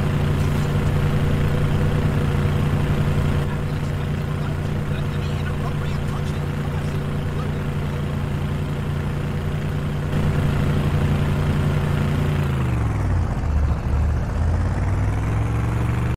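A vehicle engine drones steadily, then drops in pitch and revs back up.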